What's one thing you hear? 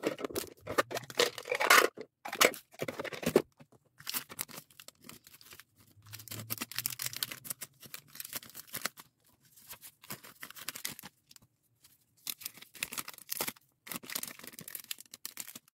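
Plastic bags crinkle and rustle close by.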